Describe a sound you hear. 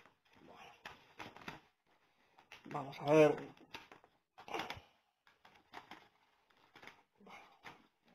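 Paper rustles and tears as an envelope is opened.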